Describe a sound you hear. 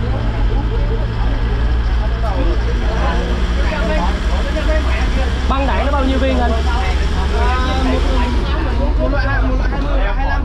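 A steady low engine rumble runs throughout.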